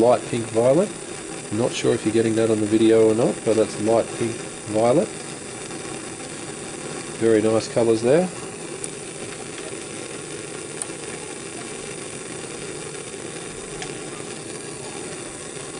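A gas burner flame hisses steadily.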